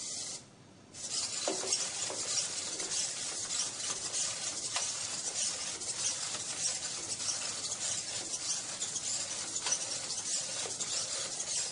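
A small robot's motors whir as it walks and moves its arms.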